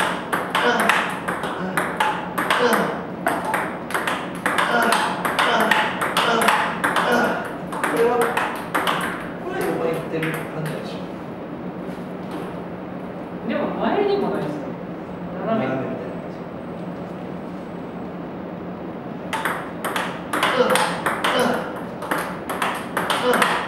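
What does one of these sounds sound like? A paddle hits table tennis balls in quick succession.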